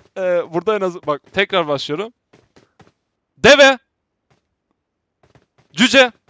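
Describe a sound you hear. A man talks with animation into a microphone, close up.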